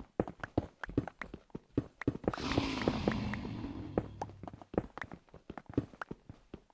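A pickaxe rapidly chips and breaks stone blocks with quick clicking knocks.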